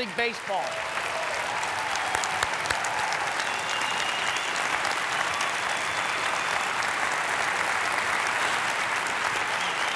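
A large crowd applauds and cheers in a big echoing hall.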